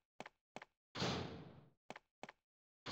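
A heavy door swings open.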